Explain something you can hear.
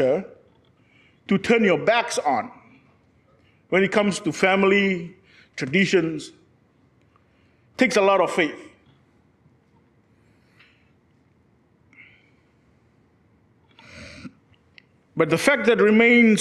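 A young man speaks with animation into a microphone, pausing between phrases.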